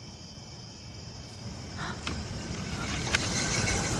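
A woman sobs quietly nearby.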